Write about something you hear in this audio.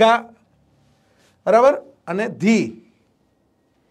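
A man speaks loudly and with animation, close to a microphone.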